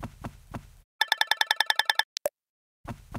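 Rapid electronic blips chirp in a short burst.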